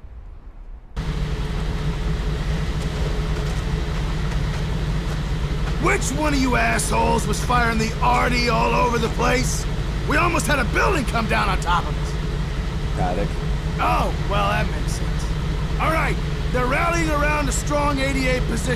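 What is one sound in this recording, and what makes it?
A tank engine idles with a steady low rumble.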